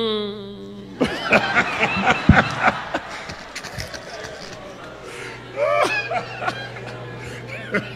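A crowd laughs and cheers.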